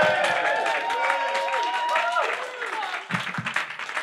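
A crowd cheers and whoops loudly in a small room.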